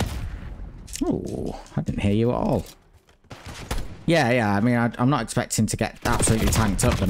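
A young man speaks with animation through a headset microphone.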